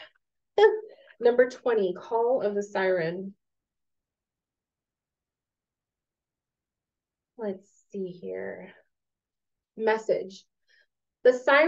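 A young woman speaks calmly into a microphone, as if over an online call.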